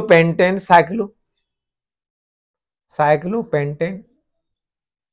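A man speaks clearly and calmly close to a microphone, in short phrases with pauses.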